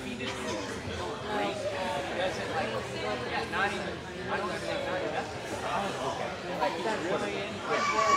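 Several adults chatter with each other nearby, their voices echoing in a large room.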